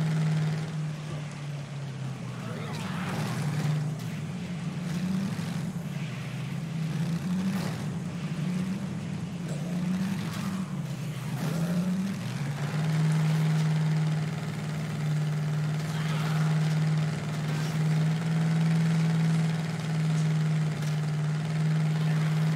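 A heavy truck engine drones, its pitch rising and falling before settling steady.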